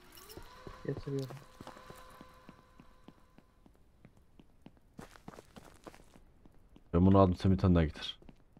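Quick footsteps run on hard ground.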